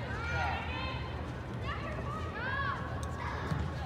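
Young women shout to each other across a large echoing indoor hall.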